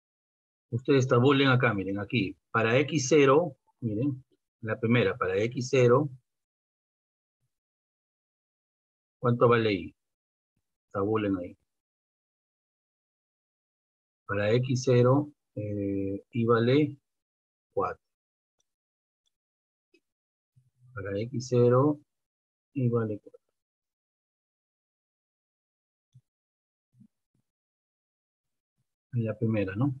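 A man explains calmly, heard close through a microphone, with pauses.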